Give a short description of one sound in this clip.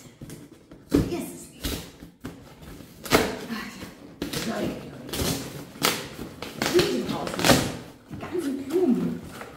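A cardboard box rustles and thumps as it is handled close by.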